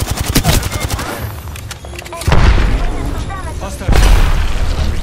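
Automatic rifle fire rattles in a video game.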